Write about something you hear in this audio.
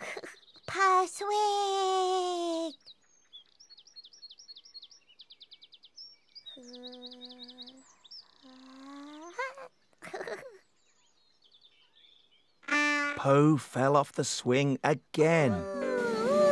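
A woman speaks in a high, playful character voice.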